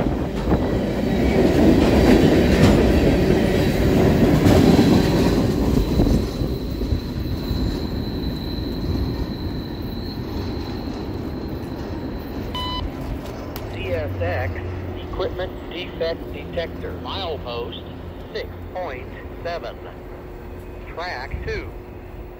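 A freight train rumbles and clatters past close by, then fades into the distance.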